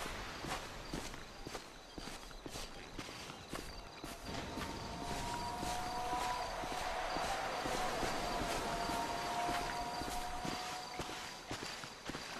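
Footsteps crunch on grass and gravel at a steady walking pace.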